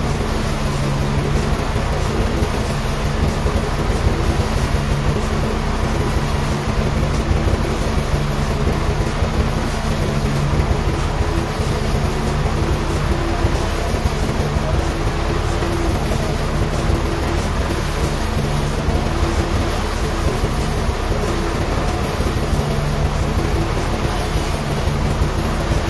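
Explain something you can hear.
A band saw whines steadily as it cuts through a large log.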